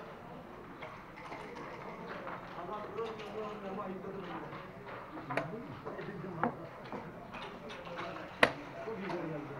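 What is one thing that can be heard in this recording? Backgammon checkers click sharply against a wooden board.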